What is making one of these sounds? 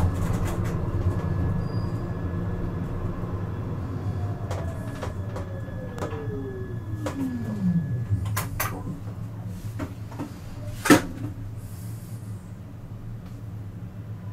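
Tram wheels click over rail joints.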